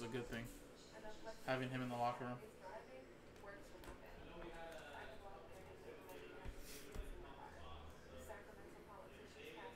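Cards rustle and slide against each other.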